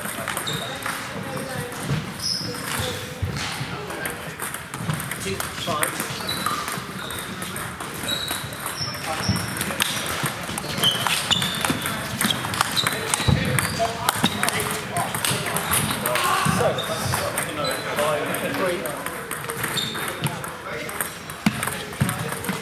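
A table tennis ball clicks back and forth off bats and a table.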